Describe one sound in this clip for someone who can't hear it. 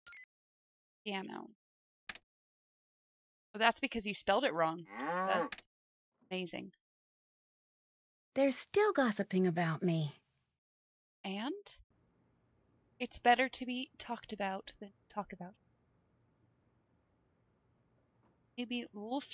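A young woman talks casually and close into a microphone.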